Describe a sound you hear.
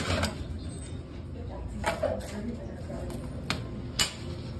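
A gumball machine's metal crank clicks and ratchets as it turns.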